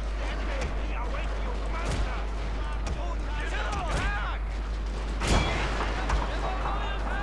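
Musket shots crack across a battlefield.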